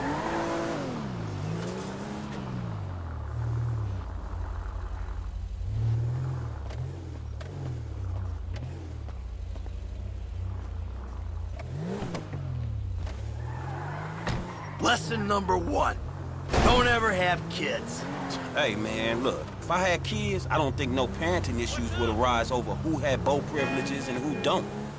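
A car engine idles and revs up and down.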